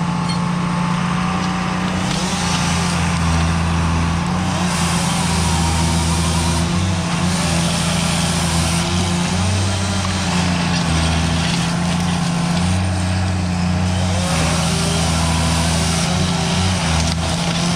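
Branches crack and snap as a machine's grapple handles felled trees.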